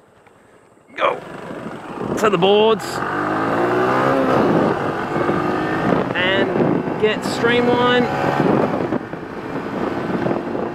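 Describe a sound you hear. A motor scooter engine pulls away and climbs steadily in pitch as it speeds up.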